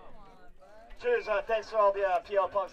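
A man shouts into a microphone, heard through loudspeakers.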